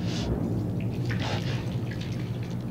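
A young man talks casually close to a microphone.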